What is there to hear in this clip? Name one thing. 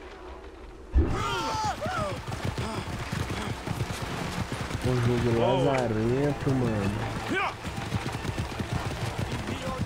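Horse hooves clop on stone.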